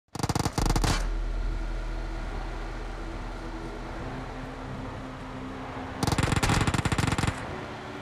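A car engine hums steadily as the car drives over rough ground.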